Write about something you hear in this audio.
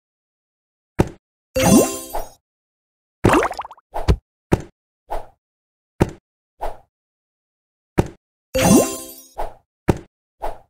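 Short chimes and pops sound as game blocks are cleared.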